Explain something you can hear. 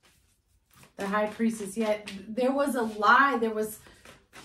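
A young woman speaks calmly and clearly into a nearby microphone.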